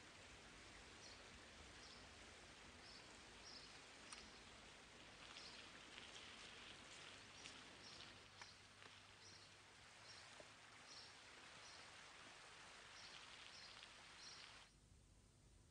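A stream trickles and babbles over rocks outdoors.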